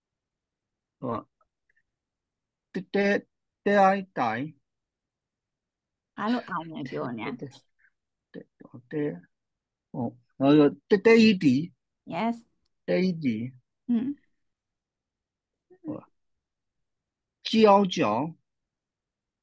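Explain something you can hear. A woman speaks clearly and slowly over an online call, pronouncing syllables.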